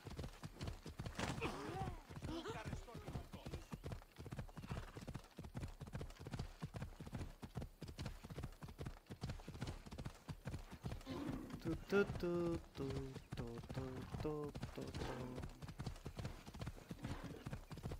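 A horse gallops quickly on a dirt path, its hooves thudding in a rapid, steady beat.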